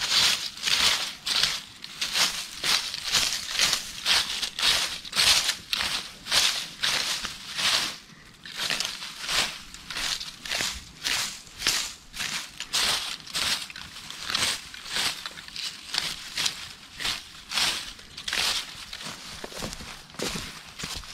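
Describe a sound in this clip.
A hand saw cuts with quick, rasping strokes.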